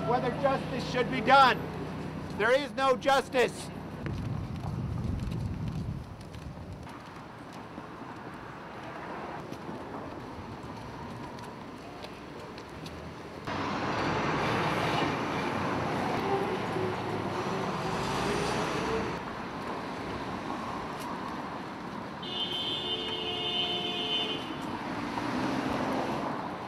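Street traffic hums steadily in the background.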